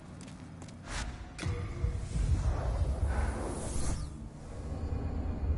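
A deep magical whoosh swells and rumbles.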